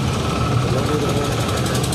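A tractor engine rumbles nearby.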